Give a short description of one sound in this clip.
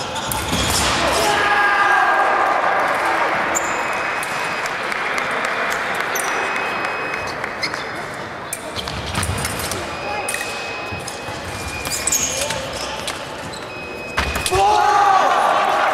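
Fencers' shoes stamp and squeak on a wooden floor in a large echoing hall.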